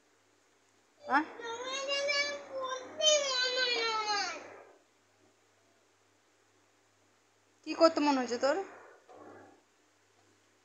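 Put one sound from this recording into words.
A young boy whines and cries out loudly close by.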